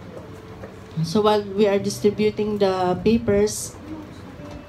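A woman speaks loudly through a microphone in a room.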